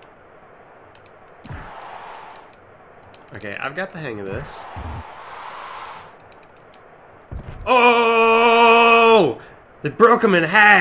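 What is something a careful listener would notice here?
Video game music plays.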